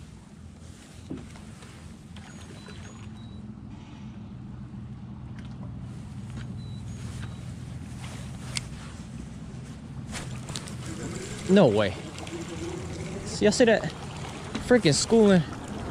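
A fishing reel whirs and clicks as its handle is wound.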